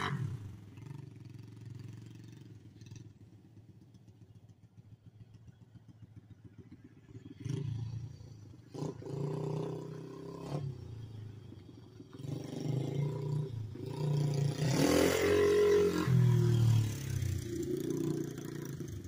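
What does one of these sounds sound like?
A small dirt bike engine buzzes in the distance and grows louder as it approaches, then passes close by and fades away.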